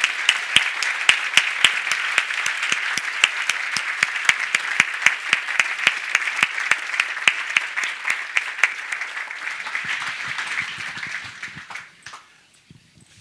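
An audience applauds loudly in a large hall, then the applause fades away.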